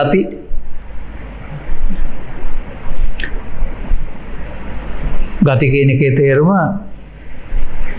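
An elderly man speaks calmly into a microphone.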